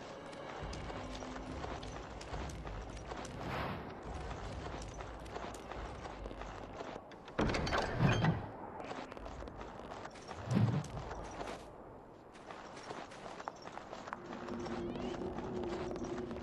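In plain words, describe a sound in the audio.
Footsteps tread steadily on dirt and wooden planks.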